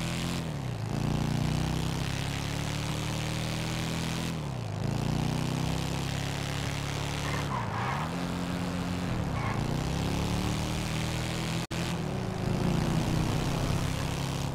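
A motorcycle engine roars steadily, revving up through the gears with short drops between shifts.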